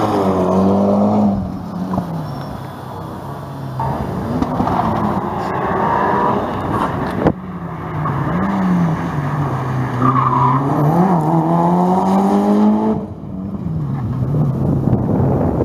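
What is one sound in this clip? A car engine revs hard and roars past.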